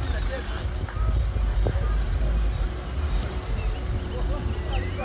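A car engine hums as a car drives slowly past.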